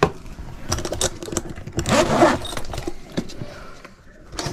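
A fabric bag rustles as hands rummage through it.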